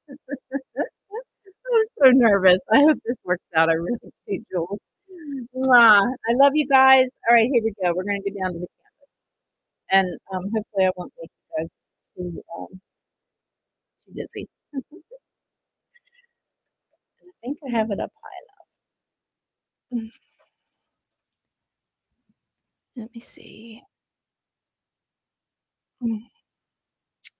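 A woman talks with animation close to a microphone.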